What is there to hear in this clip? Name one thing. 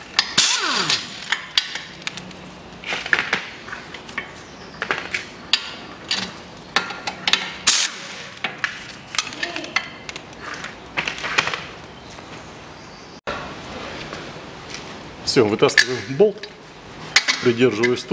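Metal tools clink and knock against metal parts.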